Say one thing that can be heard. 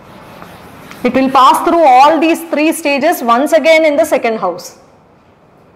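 A young woman speaks clearly and steadily, close by.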